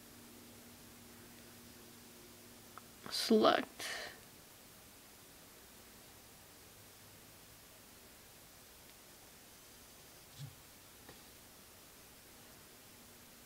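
Fingertips tap lightly on a touchscreen.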